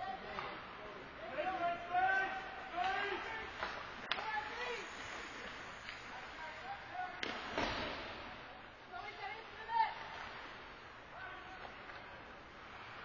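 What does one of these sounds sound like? Ice skates scrape and swish across the ice in a large echoing rink.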